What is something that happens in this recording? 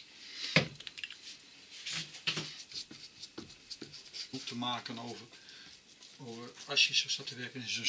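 Hands smear wet glue across a wooden board.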